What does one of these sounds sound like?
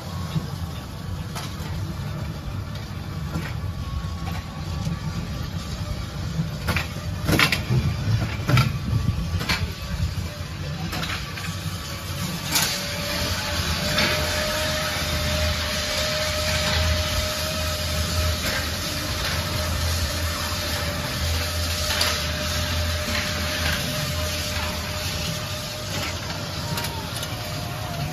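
A small petrol engine of a vintage-style ride car rumbles.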